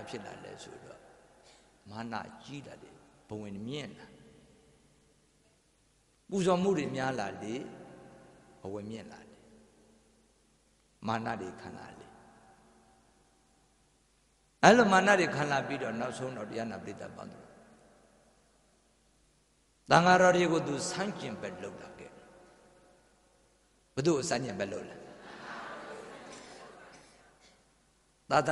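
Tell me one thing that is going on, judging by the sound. A middle-aged man speaks and chants with feeling into a microphone, in bursts with pauses, in an echoing hall.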